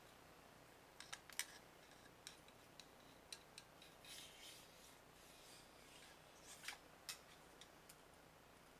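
Metal rifle parts click and knock as they are handled.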